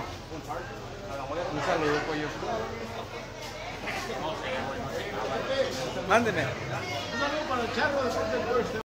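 Several men talk loudly nearby in a noisy, echoing hall.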